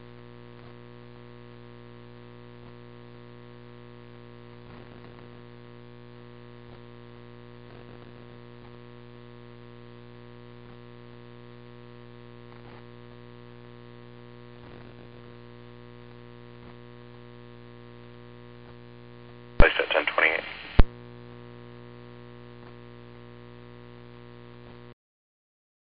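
A fire engine's pump engine hums steadily close by.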